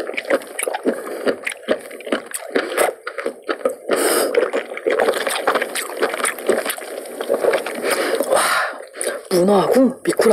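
A young woman chews food wetly close to a microphone.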